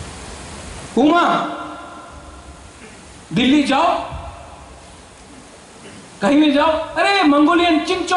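A man speaks forcefully into a microphone, heard through loudspeakers with pauses between phrases.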